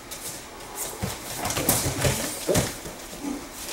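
Bodies thud onto a padded mat during a takedown.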